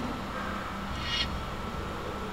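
A card game plays a short chime as a card moves into play.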